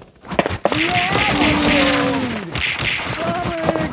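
Punches thud as a fighter strikes enemies.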